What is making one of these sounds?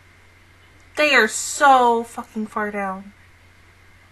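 A young woman speaks briefly and expressively into a close microphone.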